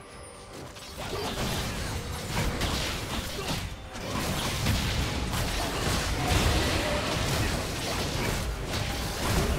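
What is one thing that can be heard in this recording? Magical blasts and hits crash together in a fierce battle.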